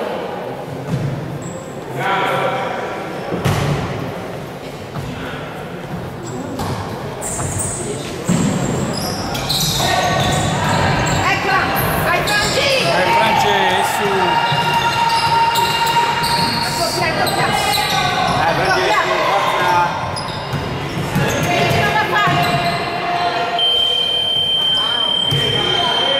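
Sneakers squeak on a hard court floor in a large echoing hall.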